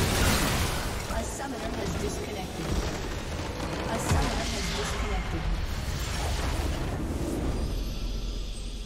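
A building explodes and crumbles with a loud rumbling blast.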